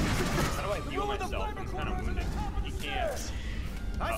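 A man shouts urgently over a radio.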